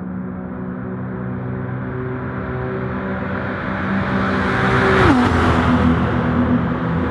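Racing car engines roar as the cars approach and pass close by.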